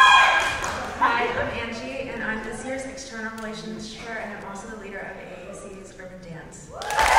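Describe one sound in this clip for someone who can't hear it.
A young woman speaks calmly into a microphone over loudspeakers in a large echoing hall.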